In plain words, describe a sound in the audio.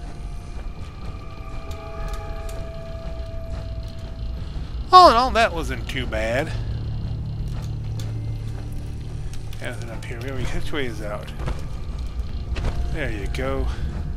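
Heavy metal footsteps clank on hard floors and metal steps.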